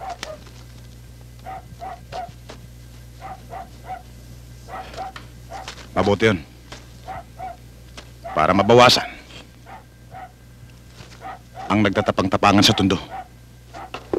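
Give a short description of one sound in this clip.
A man speaks with animation nearby.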